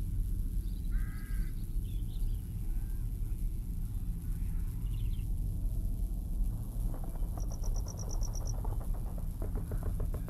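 Wind rumbles steadily through trees outdoors.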